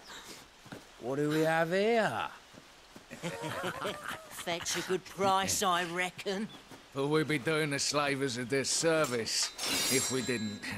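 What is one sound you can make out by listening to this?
A man speaks in a rough, mocking voice nearby.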